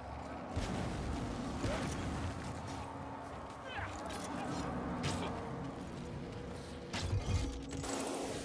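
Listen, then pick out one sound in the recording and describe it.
An axe strikes with heavy thuds.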